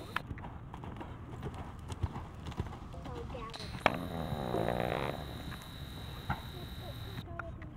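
A horse's hooves thud on soft dirt as it trots.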